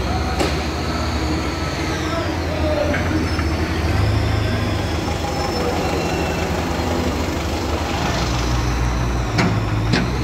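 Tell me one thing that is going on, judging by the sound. An excavator engine rumbles nearby.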